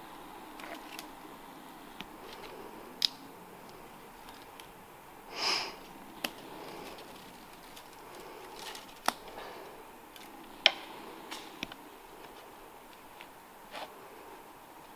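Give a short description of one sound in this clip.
Climbing gear clinks and knocks against a tree trunk.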